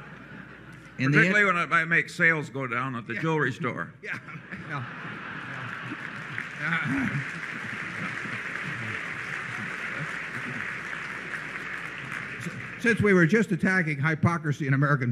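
An elderly man speaks with good humour through a microphone.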